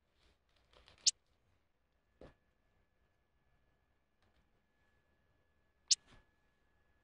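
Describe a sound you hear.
A short menu click sounds twice.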